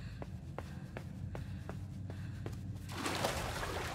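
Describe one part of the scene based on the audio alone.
Quick footsteps patter across a hard floor.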